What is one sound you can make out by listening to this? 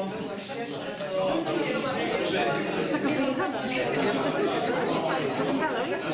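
A man speaks calmly to a room.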